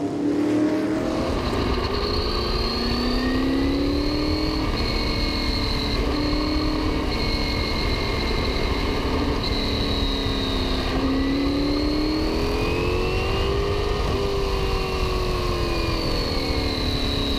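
A racing car engine roars up close, rising and falling in pitch as it shifts gears.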